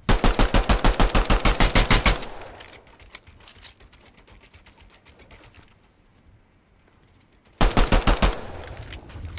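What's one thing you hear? A rapid-fire gun fires in fast, loud bursts.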